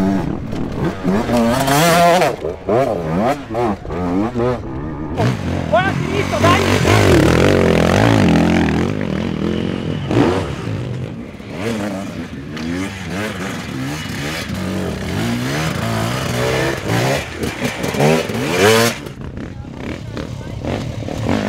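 A dirt bike engine revs hard and sputters close by.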